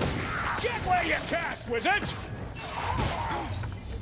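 Heavy weapons clash and strike in a fight.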